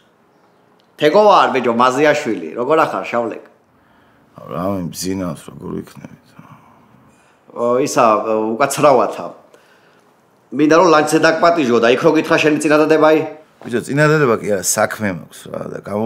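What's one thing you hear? Another man answers, heard through a phone.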